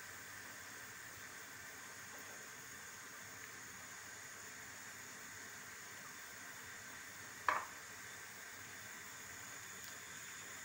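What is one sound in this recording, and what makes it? Hands crumble cheese onto pastry with soft rustling.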